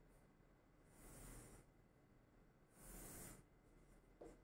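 A marker scratches across a board.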